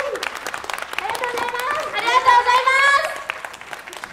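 Young women sing together through microphones over a loudspeaker.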